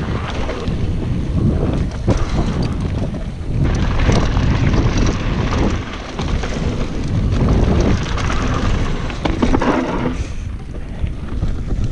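A bicycle frame rattles and clatters over bumps.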